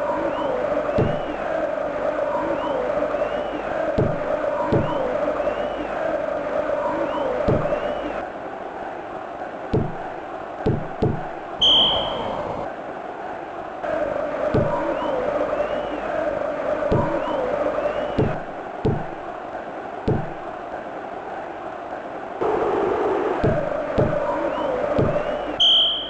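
A football in a 16-bit video game is kicked with short synthesized thuds.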